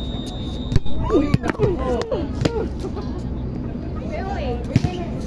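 Young men and women call out and chatter nearby outdoors.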